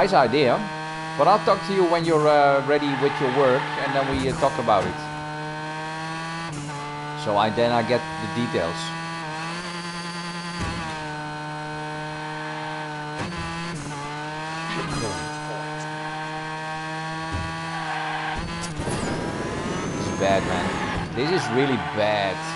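A racing car engine hums steadily at high speed.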